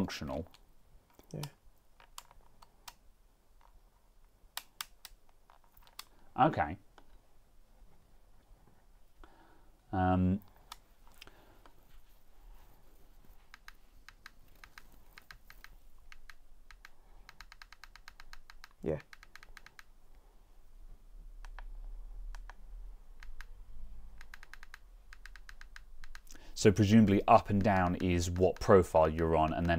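Buttons on a steering wheel click softly.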